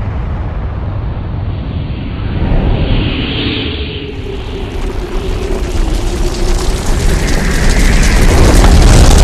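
A huge explosion roars with a deep, rumbling blast that grows louder.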